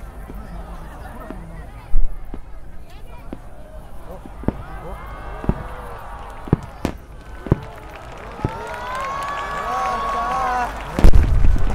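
A firework shell whistles as it climbs into the sky.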